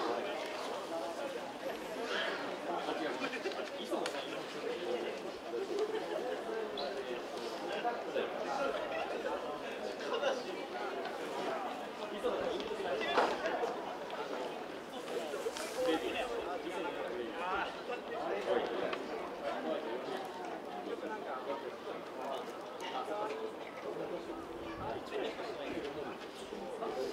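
A crowd of spectators chatters steadily outdoors.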